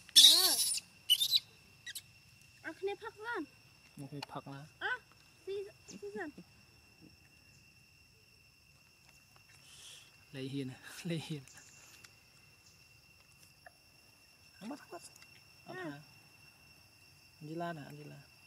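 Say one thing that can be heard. Young monkeys squeal and chirp in short, high bursts close by.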